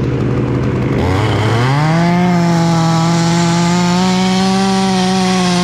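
A chainsaw revs up and runs loudly close by.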